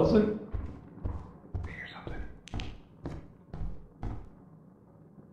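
Footsteps thud at an even pace.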